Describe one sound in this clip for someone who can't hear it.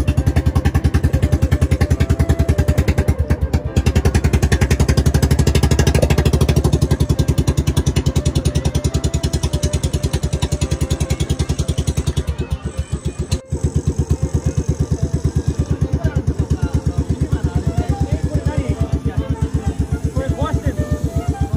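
A small boat engine chugs steadily and loudly.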